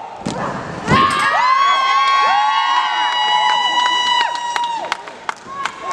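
A crowd cheers and screams loudly in an echoing hall.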